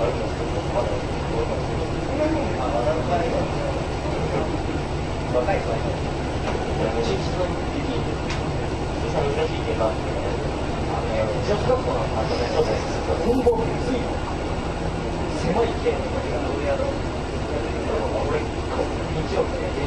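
A train's diesel engine idles with a steady low rumble.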